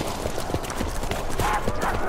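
A gun fires with a sharp crack.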